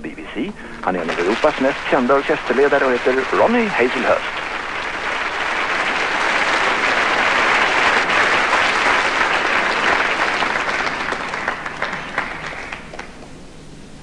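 A large audience applauds in a big hall.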